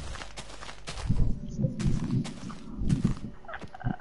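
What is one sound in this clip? Blocks crumble and break apart.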